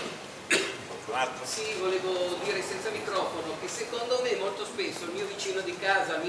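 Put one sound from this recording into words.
An elderly man speaks calmly through a loudspeaker in an open space.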